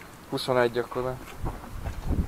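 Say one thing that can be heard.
A man speaks close by outdoors.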